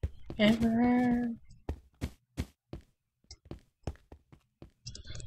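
Footsteps tap steadily on hard stone.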